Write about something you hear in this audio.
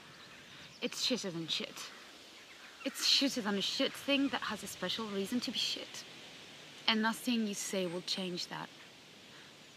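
A young woman speaks close by with intensity.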